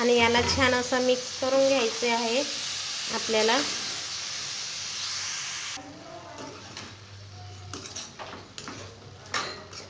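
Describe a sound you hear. A metal spoon scrapes against a pan.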